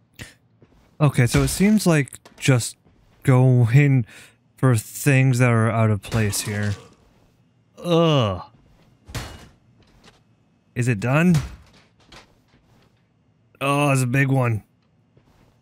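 A young man talks and shouts with animation, close to a microphone.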